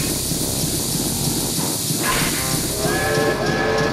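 Steam hisses from a locomotive.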